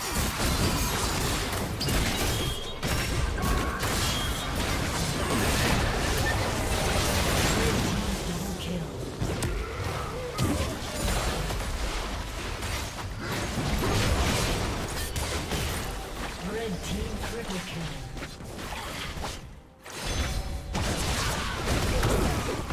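Magic blasts and sword hits crackle and thump in a fast fight.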